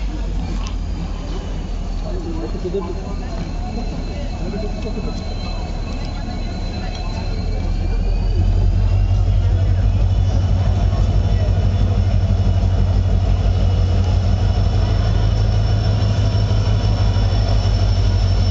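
A locomotive horn sounds with a steady tone.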